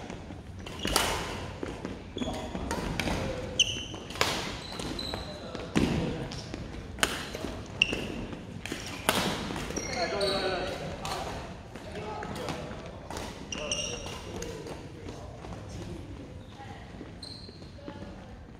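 Shoes squeak on a wooden floor.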